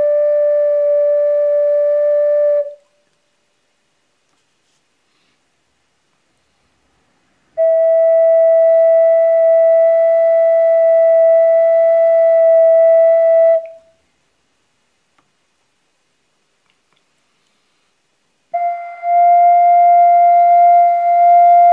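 An ocarina plays a long, steady note, stopping and starting again twice.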